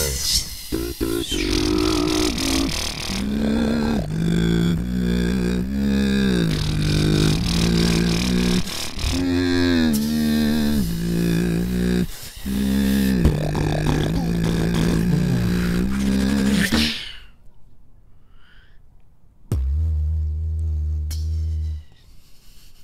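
A second young man hums a deep, steady bass line into a microphone.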